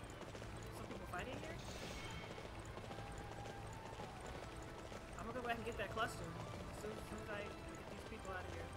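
A young woman talks calmly into a nearby microphone.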